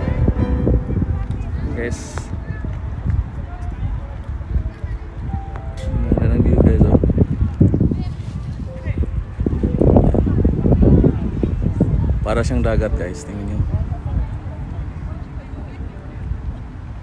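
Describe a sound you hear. Small waves lap and splash against a shoreline.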